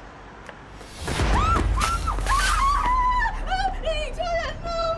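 A young woman screams and shouts in fear.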